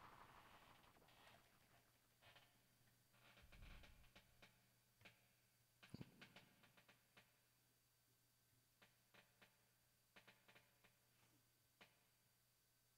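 Buttons and knobs on electronic gear click faintly.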